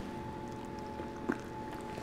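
A woman chews food noisily.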